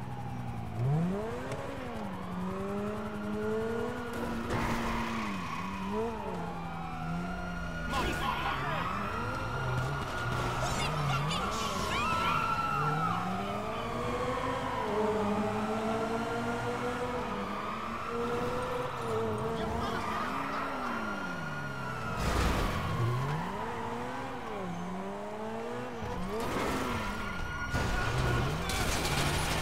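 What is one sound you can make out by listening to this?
Police sirens wail nearby.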